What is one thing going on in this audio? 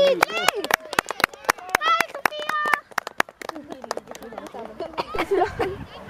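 Young girls cheer and shout excitedly outdoors.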